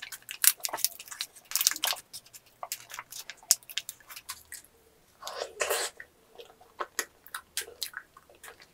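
Plastic wrapping crinkles and rustles close up as it is unwrapped.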